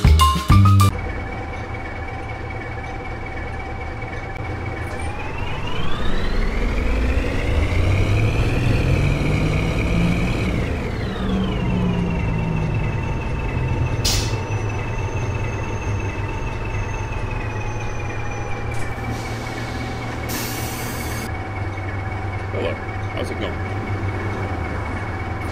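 A bus engine idles with a steady hum, revs up and then settles back down.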